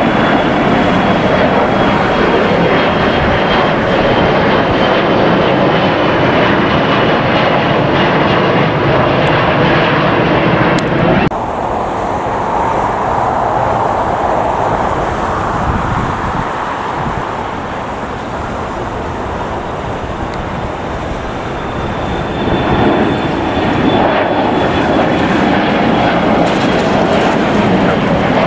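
A twin-engine regional jet roars as it climbs out after takeoff.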